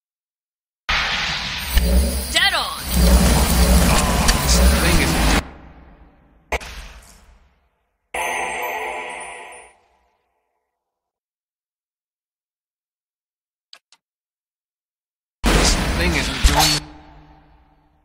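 Magic spells blast and crackle in a fantasy battle.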